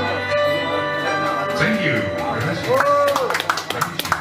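An elderly man sings into a microphone, heard through loudspeakers.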